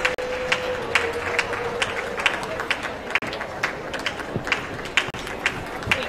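A crowd of spectators murmurs outdoors.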